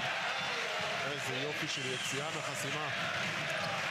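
A crowd chants in unison.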